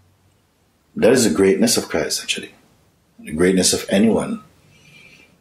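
A middle-aged man speaks calmly and thoughtfully, close by.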